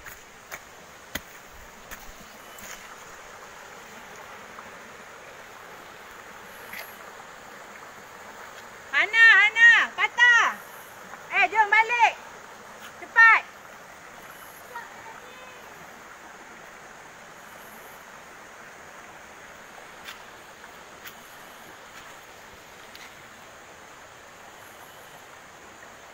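A shallow stream trickles gently over rocks outdoors.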